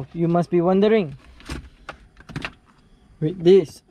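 A plastic tray clicks and knocks as it is pulled out.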